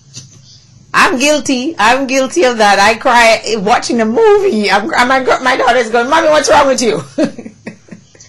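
A woman speaks warmly and with animation into a close microphone.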